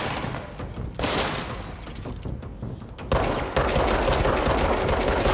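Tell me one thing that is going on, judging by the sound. Debris shatters and scatters in explosions.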